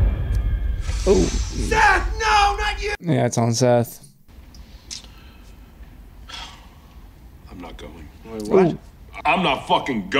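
A young man talks casually and close into a microphone.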